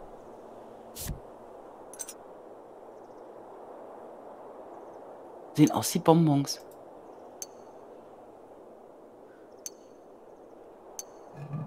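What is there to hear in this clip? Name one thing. Short soft chimes ring out now and then.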